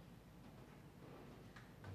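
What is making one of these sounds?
A young woman laughs softly nearby.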